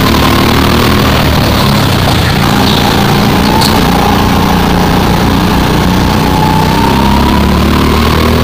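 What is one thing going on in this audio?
A go-kart's small petrol engine drones at full throttle in an echoing hall.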